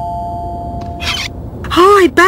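A cartoon woman speaks.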